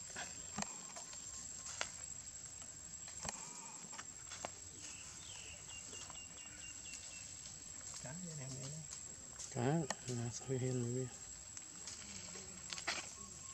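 Monkeys' feet rustle through dry leaves on the ground.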